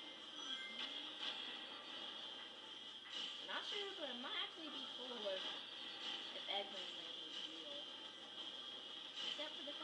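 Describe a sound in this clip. Fast electronic game music plays through a television speaker.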